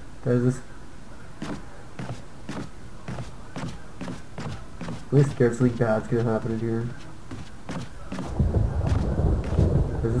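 Footsteps thud on a wooden floor at a steady walking pace.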